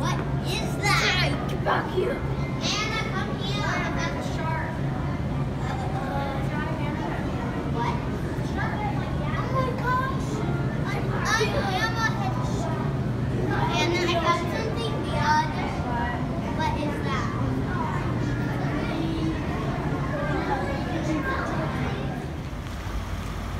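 Young children chatter and call out excitedly in a busy echoing hall.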